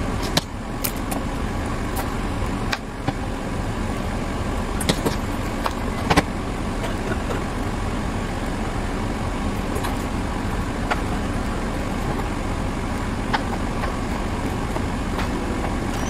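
A knife taps and chops against a cutting board.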